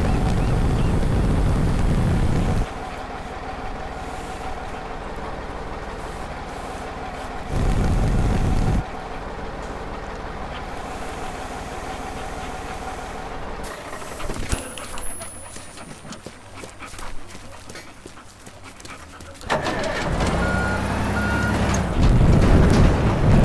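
A heavy crane truck's engine rumbles and revs.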